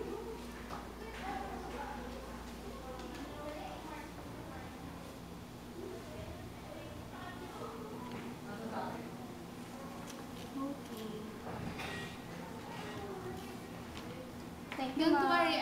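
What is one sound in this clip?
A young woman talks quietly nearby.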